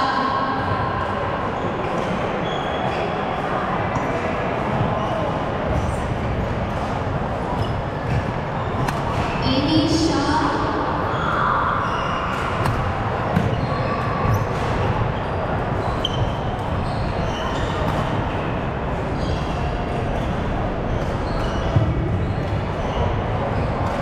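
Badminton rackets strike a shuttlecock in quick rallies.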